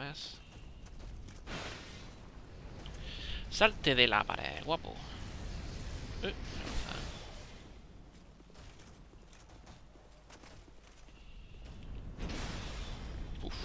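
A young man talks into a microphone, close and with animation.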